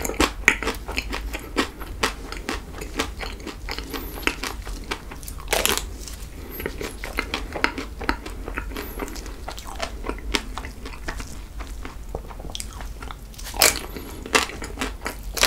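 A wafer snack crunches as a young man bites into it.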